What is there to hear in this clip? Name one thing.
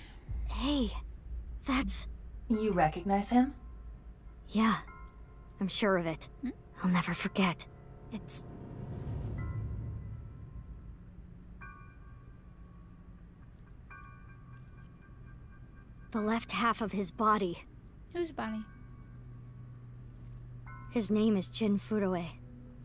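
A young woman reads aloud with animation close to a microphone.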